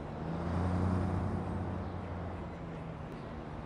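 A bus engine rumbles close by and then pulls away.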